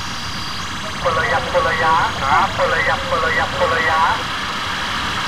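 A man's recorded voice calls out over and over through a crackly loudspeaker.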